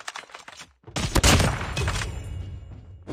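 A sniper rifle fires a single loud, booming shot that echoes away.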